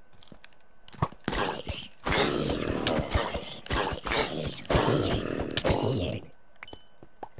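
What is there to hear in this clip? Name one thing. A sword strikes a burning creature with heavy thuds.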